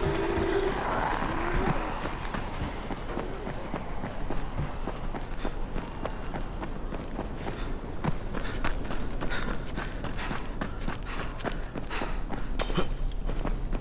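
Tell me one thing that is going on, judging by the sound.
Quick footsteps run over wooden sleepers and gravel.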